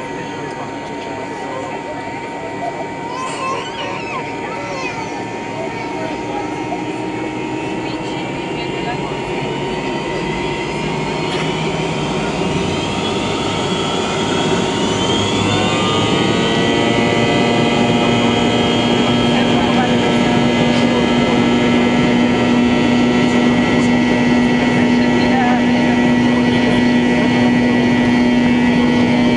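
An airliner's wheels rumble over the runway.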